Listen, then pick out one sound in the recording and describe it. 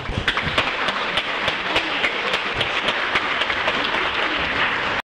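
A crowd claps in a steady rhythm in a large echoing hall.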